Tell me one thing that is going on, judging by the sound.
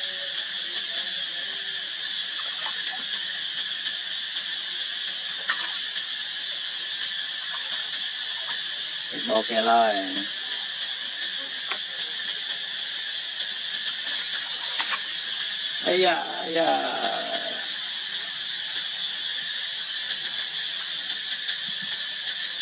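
Water splashes and laps as monkeys paddle and jump in a pond.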